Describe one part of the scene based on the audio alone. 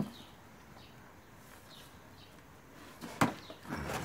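A scoop scrapes soil and pours it into a plastic tub.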